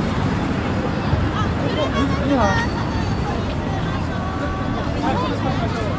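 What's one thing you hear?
A group of men and women chat quietly in the distance.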